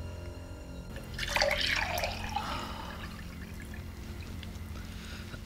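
Juice pours into a glass.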